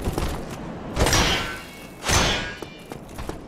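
Weapons clash with sharp metallic clangs.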